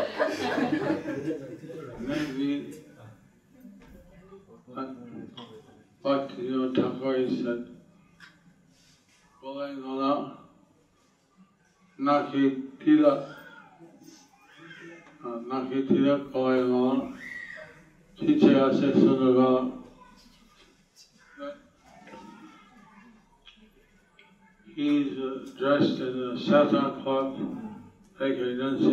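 A middle-aged man speaks calmly and slowly into a microphone, with pauses.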